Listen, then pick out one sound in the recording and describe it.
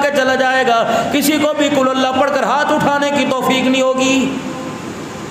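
A middle-aged man chants in a drawn-out, melodic voice through a microphone in an echoing room.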